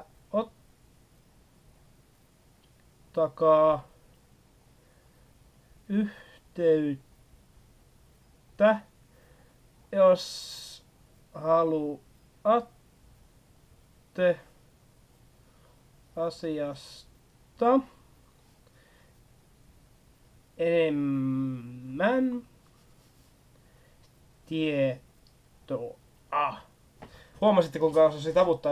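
A young man speaks calmly and close by, in short phrases with pauses.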